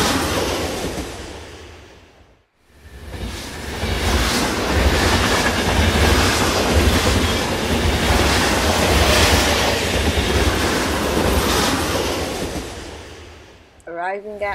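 Toy wheels rumble and rattle across a hard floor.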